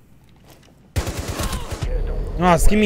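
Rapid gunfire bursts loudly and briefly.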